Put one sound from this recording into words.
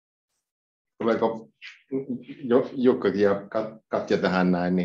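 A man talks close by in a room.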